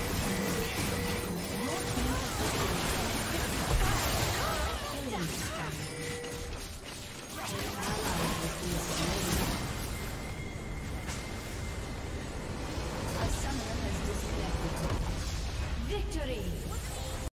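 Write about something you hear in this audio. Game spell effects whoosh and crackle in a busy fight.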